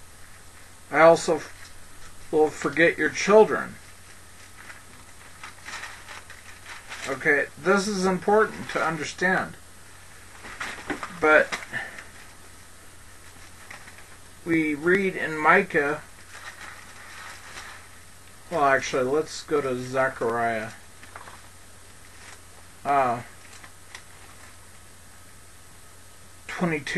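A man speaks calmly and slowly in bursts, close to a headset microphone.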